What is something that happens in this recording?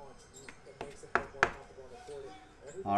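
Cards slide and click against each other.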